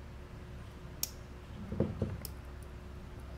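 Wire cutters snip through a wire with a sharp click.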